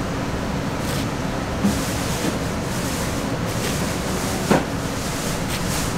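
A knife blade taps and slices on a plastic cutting board.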